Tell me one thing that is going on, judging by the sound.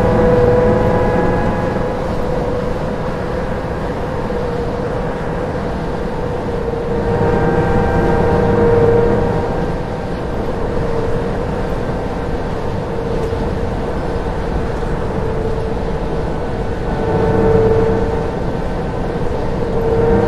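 A bus engine hums steadily and rises and falls in pitch as the bus drives along.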